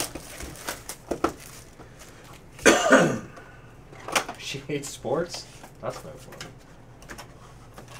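Foil packaging crinkles and rustles as it is torn open.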